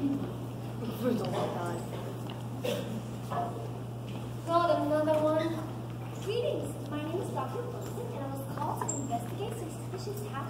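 A young man speaks loudly in a large hall, heard from the audience.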